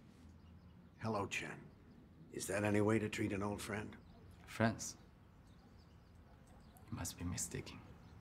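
A young man speaks softly and calmly.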